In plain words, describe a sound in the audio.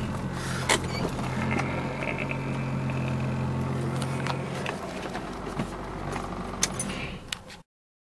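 A car engine idles with a low steady hum from inside the car.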